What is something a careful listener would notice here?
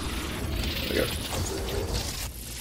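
A creature's attack lands with a wet, crunching hit.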